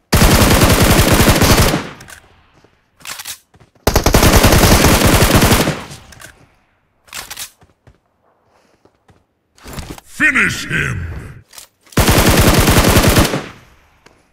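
A rifle fires loud, rapid bursts of shots.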